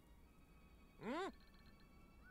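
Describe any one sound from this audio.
A game character's short voice cry rings out.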